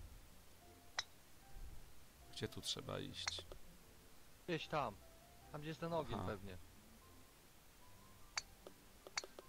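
A golf ball is tapped with a putter with a short click.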